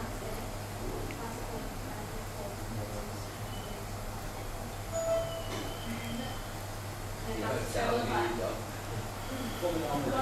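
Small metal parts click softly as gloved hands handle a tattoo machine.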